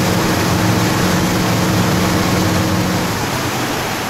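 A motorboat engine drones steadily nearby.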